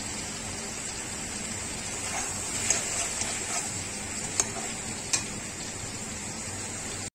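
Chicken sizzles in a hot pan.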